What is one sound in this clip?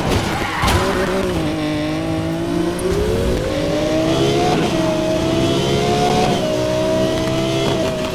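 A car engine revs hard and climbs through the gears.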